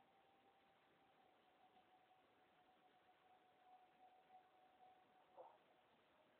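A young woman whistles a long, steady note close by.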